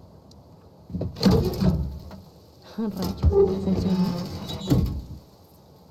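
A heavy metal safe door creaks open.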